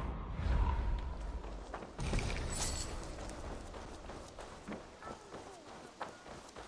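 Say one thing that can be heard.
Footsteps run over a dirt path.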